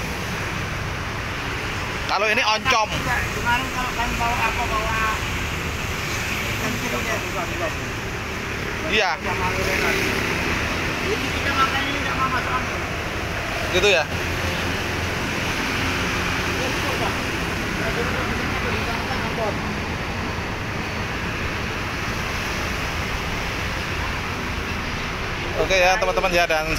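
Elderly men talk casually nearby.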